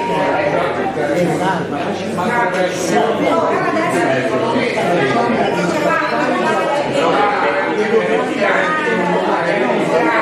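Several adults talk over one another.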